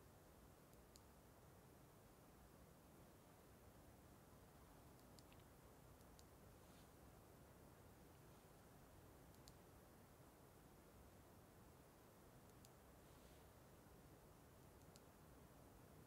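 A small button clicks several times.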